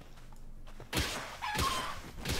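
A sharp hit lands on a creature.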